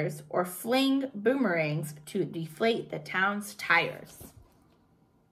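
A young woman reads aloud calmly, close to a microphone.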